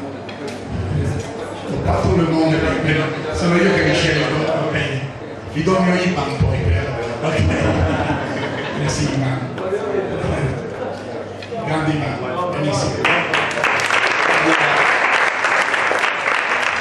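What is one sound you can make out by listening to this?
A man speaks with animation through a microphone and loudspeaker.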